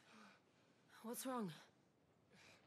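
A young woman asks a short question softly.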